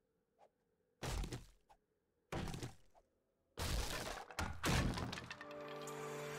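A wooden club thuds against wood.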